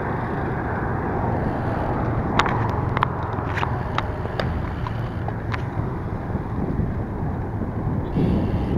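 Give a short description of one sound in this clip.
Wind rushes steadily past a bicycle rider outdoors.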